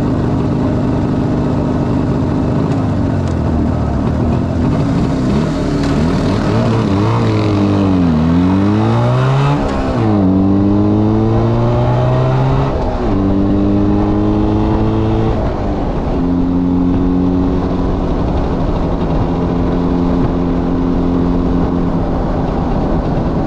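A loud motorcycle engine revs up and down, then accelerates and shifts through the gears.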